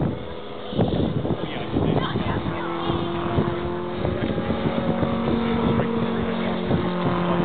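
Wind buffets outdoors.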